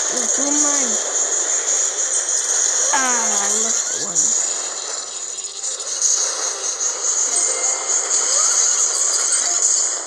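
Flamethrowers roar in bursts.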